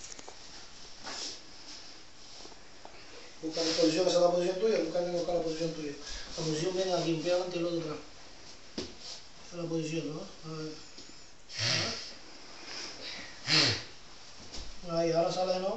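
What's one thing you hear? Bare feet shuffle and thud on a carpeted floor.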